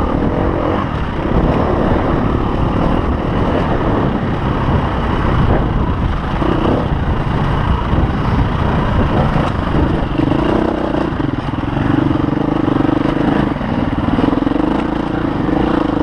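Wind buffets loudly against a microphone.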